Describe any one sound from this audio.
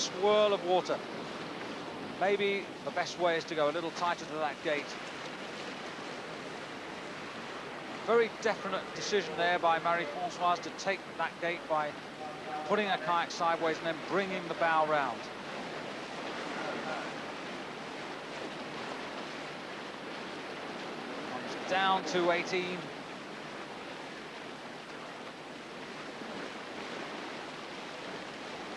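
Whitewater rushes and churns loudly.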